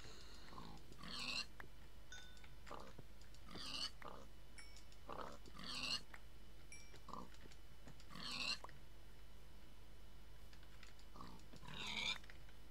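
A video game pig squeals when struck with a sword.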